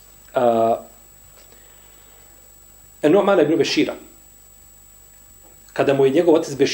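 A man speaks calmly and slowly, close to a microphone, with long pauses.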